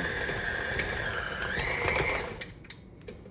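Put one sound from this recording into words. A stand mixer motor whirs and then winds down.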